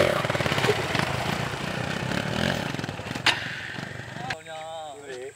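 A motorcycle engine runs and revs nearby.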